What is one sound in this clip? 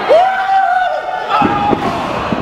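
A wrestler slams onto a wrestling ring's canvas with a thud.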